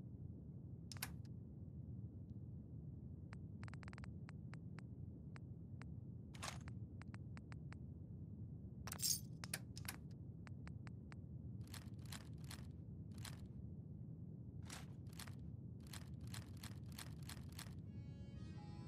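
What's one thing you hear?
Short menu clicks and ticks sound as items are scrolled through.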